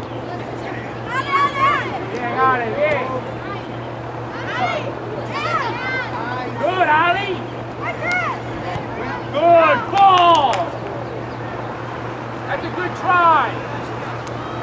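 Young women shout and call out across an open field, heard from a distance.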